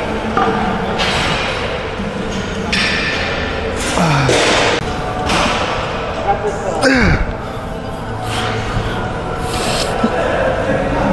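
A young woman breathes out hard with each push.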